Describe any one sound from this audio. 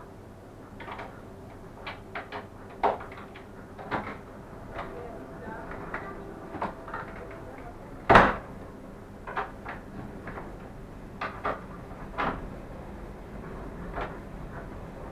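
Train wheels knock and clatter over rail joints.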